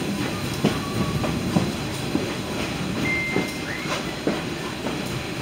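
A train rumbles along the track, its wheels clacking over rail joints.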